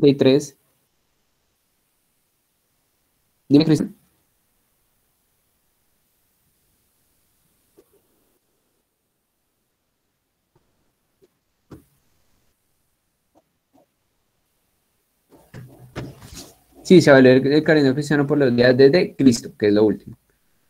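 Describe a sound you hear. A young man speaks through an online call, in short bursts and then at length.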